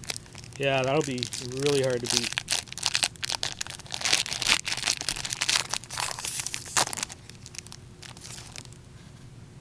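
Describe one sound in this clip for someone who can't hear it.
A foil wrapper crinkles and tears loudly.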